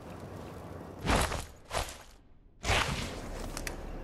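A soft whoosh sounds several times.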